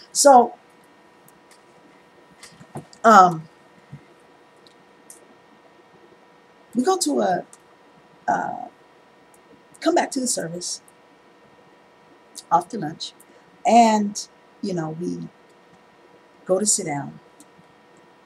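A woman speaks in short bursts into a headset microphone, with pauses between phrases.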